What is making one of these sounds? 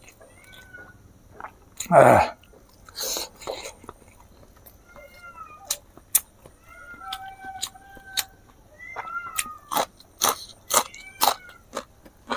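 A man chews food loudly and wetly close to a microphone.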